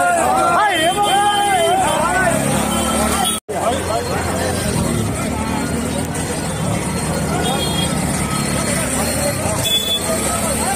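Several men shout and talk loudly close by outdoors.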